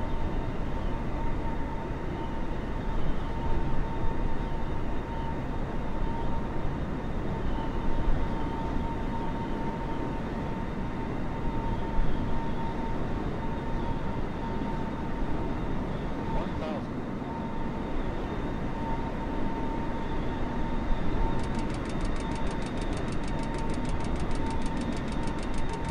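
Jet engines roar steadily with a constant whine.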